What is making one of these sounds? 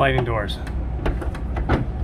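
A glass door slides along its track.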